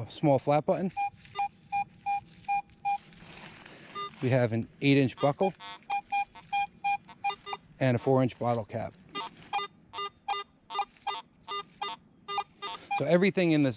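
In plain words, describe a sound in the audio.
A metal detector beeps in quick, steady pulses.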